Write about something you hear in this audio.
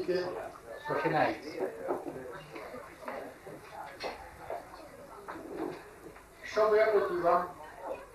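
An elderly man speaks into a microphone, heard over a loudspeaker in a room.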